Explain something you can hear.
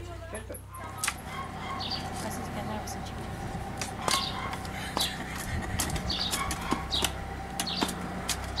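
A shovel scrapes and knocks against soil in a metal wheelbarrow.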